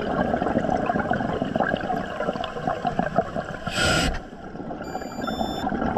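Water crackles and pops all around underwater.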